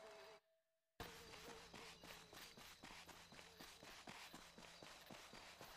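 Footsteps run quickly over a dirt road.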